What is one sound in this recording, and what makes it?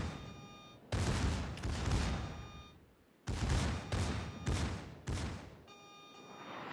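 Heavy guns fire in loud booming salvos that rumble away.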